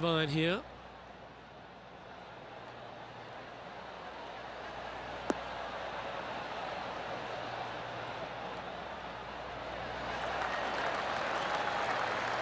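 A crowd murmurs and cheers, growing louder.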